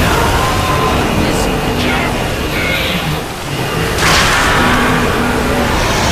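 A huge creature roars loudly.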